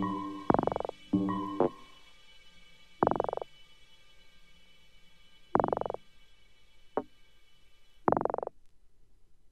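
Music plays from a spinning record in short, loud bursts separated by pauses.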